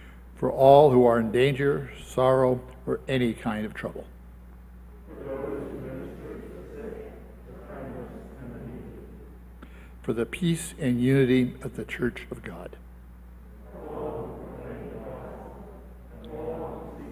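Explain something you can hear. An elderly man reads aloud calmly through a microphone in an echoing room.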